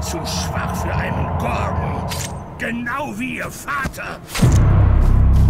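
An elderly man speaks in a low, menacing voice close by.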